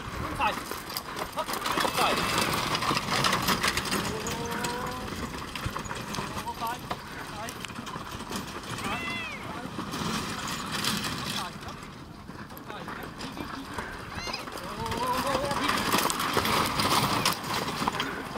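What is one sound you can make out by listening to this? Carriage wheels rumble over dirt.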